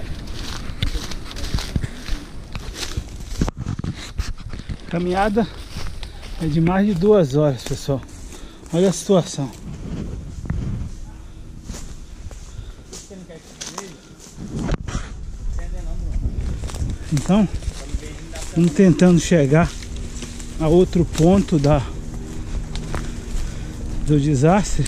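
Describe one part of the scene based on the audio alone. Leafy branches brush and rustle against the walker.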